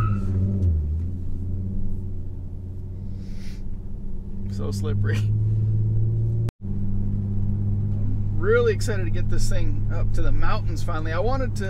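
A car engine hums steadily at a low idle.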